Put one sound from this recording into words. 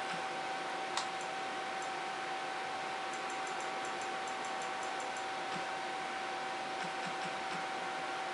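Soft menu clicks tick quickly, one after another.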